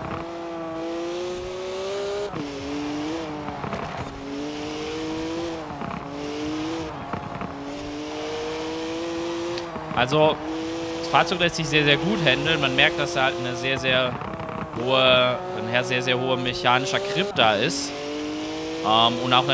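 A car engine roars steadily, its pitch dipping at each gear change.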